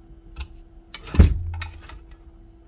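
A heavy power tool thumps as it is set down on a bench.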